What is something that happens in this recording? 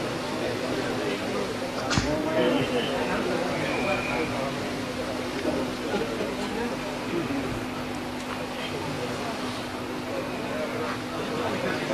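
A crowd of men murmurs and talks nearby.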